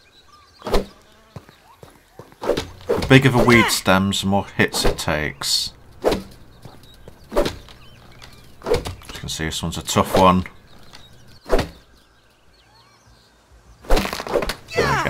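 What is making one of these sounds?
An axe chops repeatedly into a thick plant stalk with sharp thuds.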